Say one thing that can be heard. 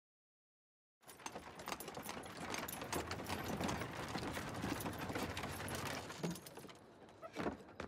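Carriage wheels rattle over cobblestones.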